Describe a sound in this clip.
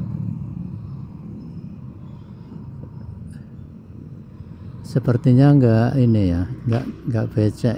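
Motor scooters ride past.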